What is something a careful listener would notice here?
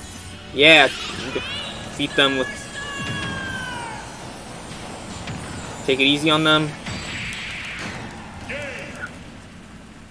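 Video game attack sounds burst and whoosh.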